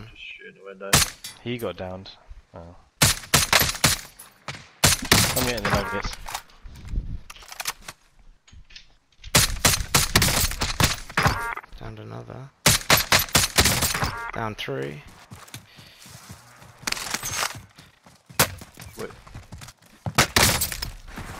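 A rifle fires loud sharp shots that echo.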